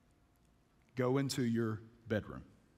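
A man speaks calmly to an audience through a microphone.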